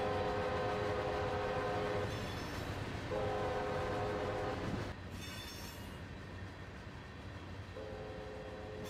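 Freight cars rumble and clatter along the rails.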